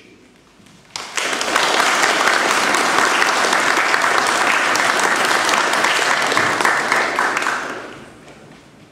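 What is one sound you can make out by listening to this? An audience applauds loudly in an echoing hall, then the applause dies away.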